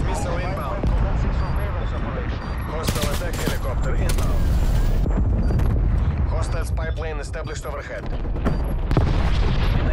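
An assault rifle fires bursts.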